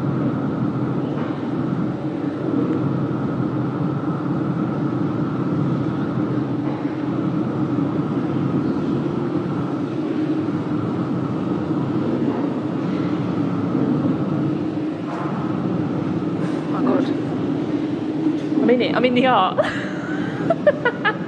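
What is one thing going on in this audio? A low, steady droning sound plays from a loudspeaker.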